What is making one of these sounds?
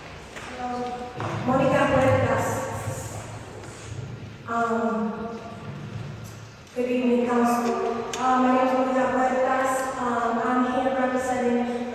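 A young woman speaks calmly into a microphone, with pauses.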